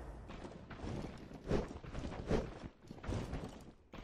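A weapon swings with quick, sharp swishes.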